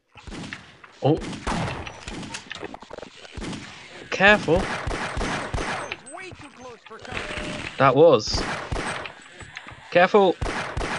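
A pistol fires shot after shot.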